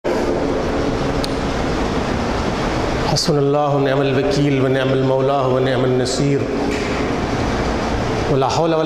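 A man speaks loudly into a microphone in a long, drawn-out chanting voice, heard through loudspeakers.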